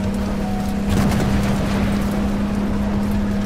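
A shell explodes with a loud boom.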